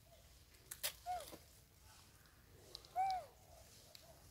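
A baby monkey squeals shrilly a few times.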